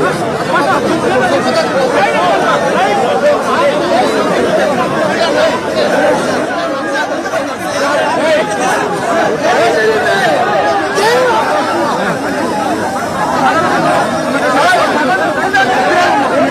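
A large crowd of men shouts and cheers loudly outdoors.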